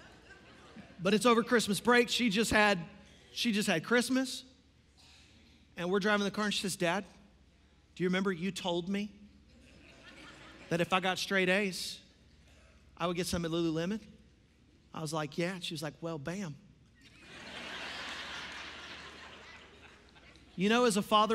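A young man speaks with animation through a microphone in a large echoing hall.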